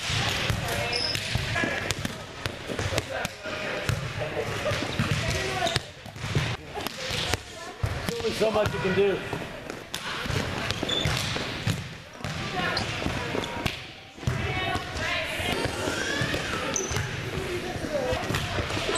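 Young women call out and chatter in a large echoing hall.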